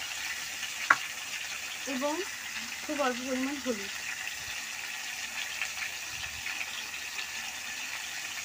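Potatoes sizzle softly in a hot pan.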